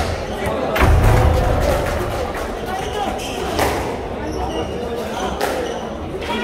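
A squash ball smacks sharply against a racket and the court walls, echoing in a hard room.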